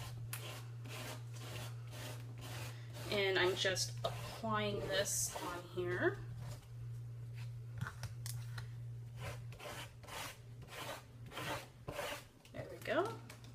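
Fingers rub over paper in soft, repeated scratchy strokes.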